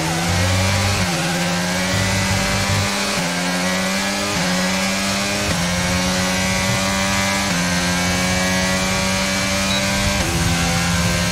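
The gearbox of a racing car shifts with sudden jumps in the engine's pitch.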